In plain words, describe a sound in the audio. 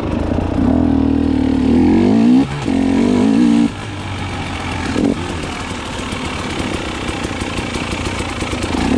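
Tyres crunch over leaves and dirt.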